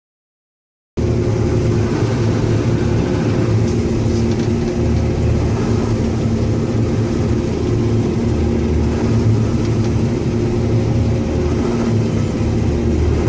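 A harvester's header cuts through dry grain with a rushing clatter.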